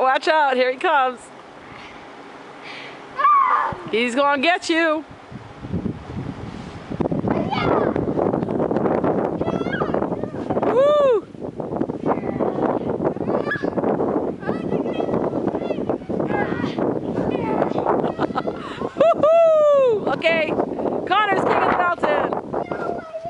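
Children shout and squeal excitedly close by.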